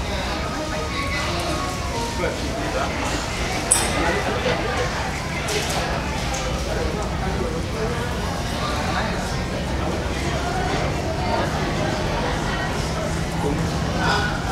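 A woman sings through loudspeakers in a large echoing hall.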